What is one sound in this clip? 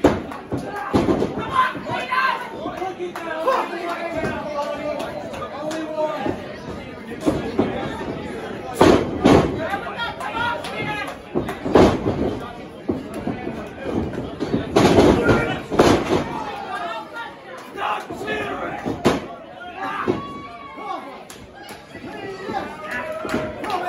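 Bodies slam heavily onto a wrestling ring mat with loud thuds.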